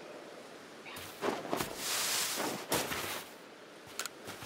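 Footsteps rustle quickly through grass.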